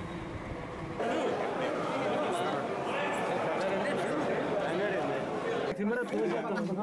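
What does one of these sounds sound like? A crowd of men chatters and murmurs close by.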